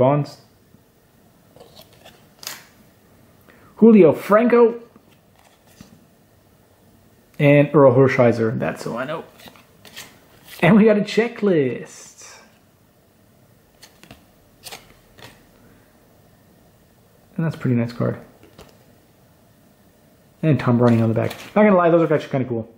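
Trading cards rustle softly as they are shuffled by hand.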